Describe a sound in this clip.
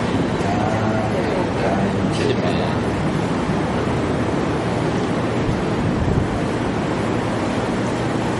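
An elderly man speaks calmly through a microphone and loudspeakers in an echoing hall.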